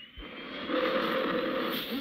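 A car engine roars as a car speeds past.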